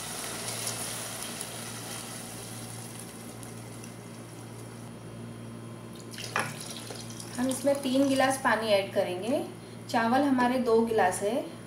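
A spatula stirs and scrapes inside a pot.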